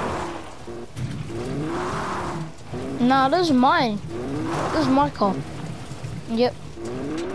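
A fuel pump whirs steadily as fuel flows into a car.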